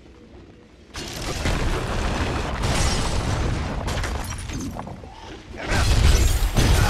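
Blades clash and strike in a loud fight.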